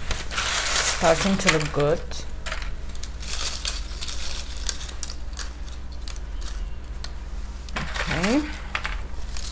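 A young woman speaks briefly and calmly nearby.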